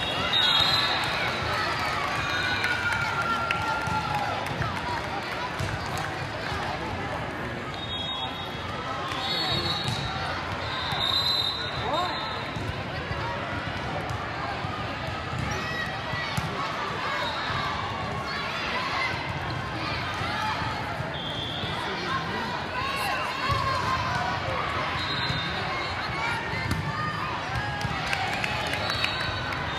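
A crowd of spectators chatters steadily in a large echoing hall.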